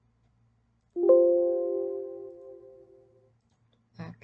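A computer alert chime rings once and slowly fades.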